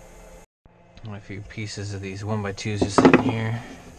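Wooden blocks knock against each other.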